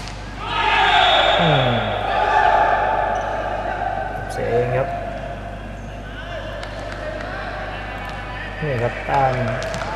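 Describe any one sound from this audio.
A crowd cheers in an echoing indoor hall.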